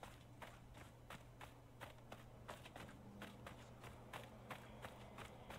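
Footsteps crunch quickly over sand and gravel.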